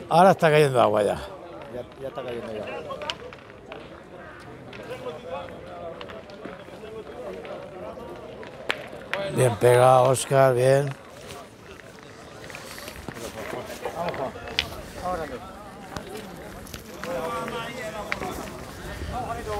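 Men chat in the distance outdoors.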